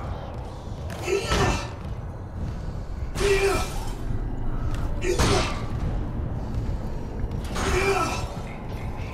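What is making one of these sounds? Heavy boots thud slowly on a metal floor.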